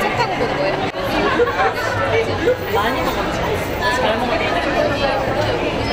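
A crowd chatters around.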